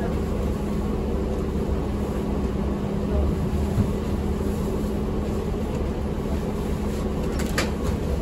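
A plastic shopping bag rustles as it is carried past.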